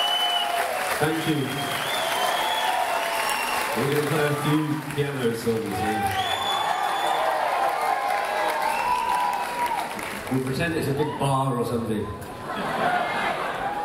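A man speaks loudly into a microphone, heard through loudspeakers in a large hall.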